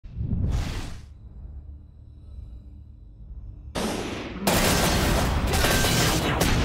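Energy weapons blast and crash in loud bursts.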